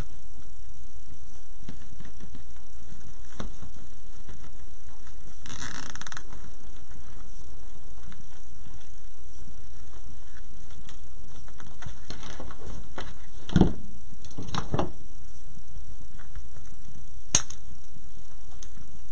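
Fabric rustles and crinkles as hands handle it.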